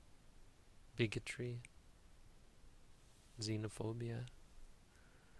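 A man speaks calmly and briefly, close to a microphone.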